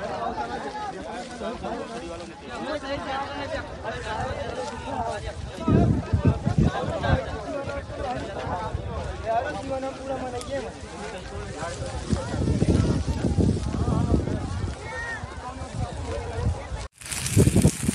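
A crowd of men talk and shout outdoors at a distance.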